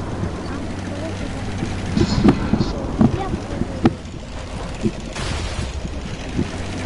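A tank's tracks clatter over rough ground.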